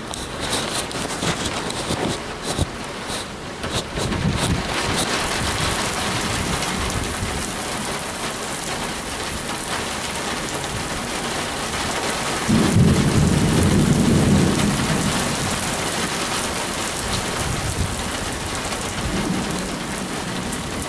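Heavy rain hisses steadily outdoors.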